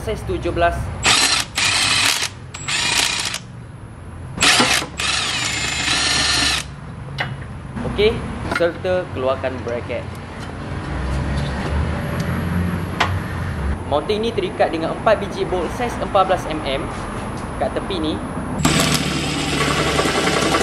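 A cordless impact wrench whirs and rattles in loud, short bursts.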